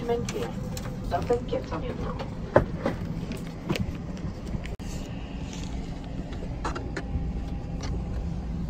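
A steady low hum of aircraft cabin air fills the space.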